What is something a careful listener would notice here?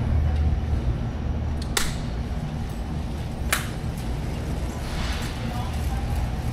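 A shopping cart rattles as it rolls over a hard floor.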